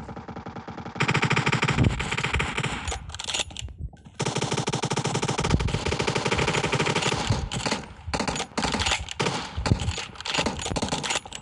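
Rapid gunfire rattles from a video game.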